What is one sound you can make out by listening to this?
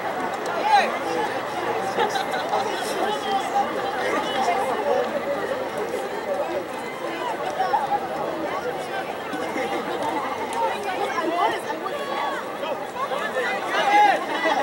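Players call out to each other across the field.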